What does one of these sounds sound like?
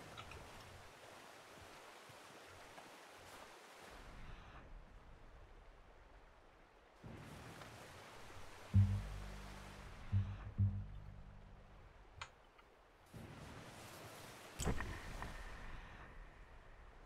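Wind gusts blow outdoors.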